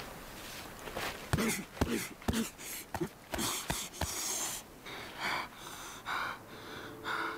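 A man sobs and gasps heavily close by.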